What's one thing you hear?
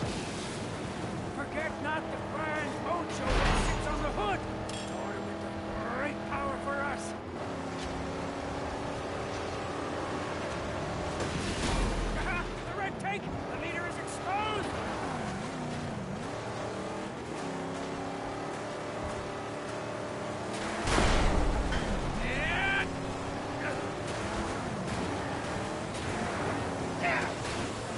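A car engine roars steadily as it speeds over loose ground.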